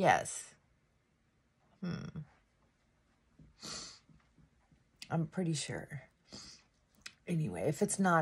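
A middle-aged woman talks close to the microphone in short bursts, with animation.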